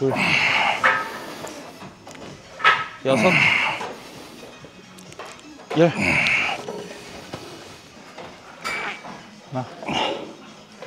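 A man grunts loudly with effort, close by.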